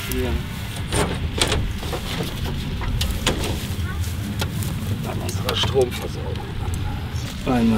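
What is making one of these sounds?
A light metal frame knocks and scrapes against a surface.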